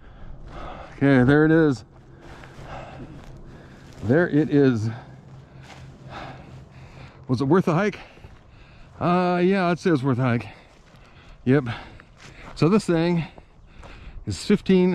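A man speaks calmly close by, in short phrases.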